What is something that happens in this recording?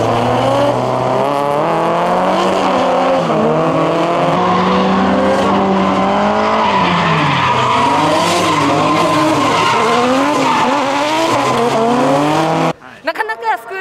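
Tyres screech.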